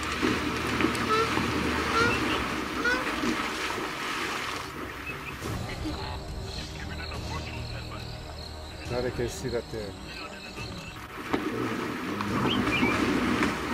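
Water splashes loudly as an animal thrashes through it.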